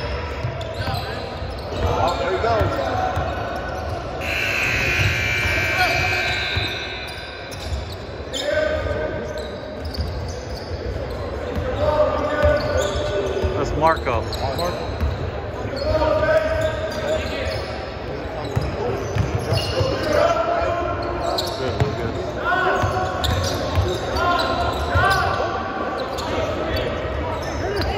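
Young players and onlookers shout and call out across the gym.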